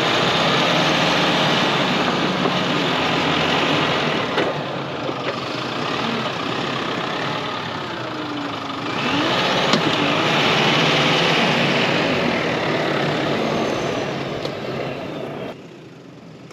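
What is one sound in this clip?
A truck engine revs loudly close by.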